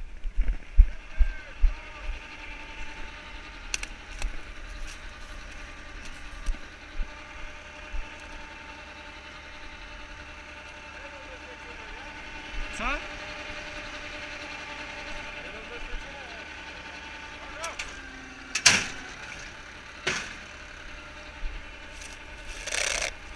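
A tractor engine hums steadily close by.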